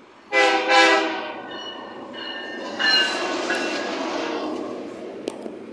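A diesel locomotive rumbles past close by.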